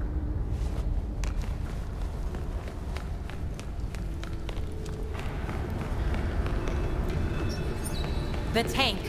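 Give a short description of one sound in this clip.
Footsteps clatter quickly on metal stairs.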